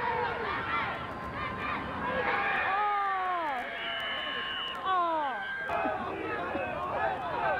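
Men and boys on a sideline shout and cheer loudly outdoors.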